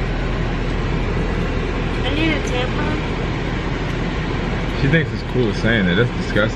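A car engine hums steadily inside.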